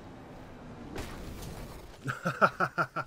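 An explosion bursts loudly.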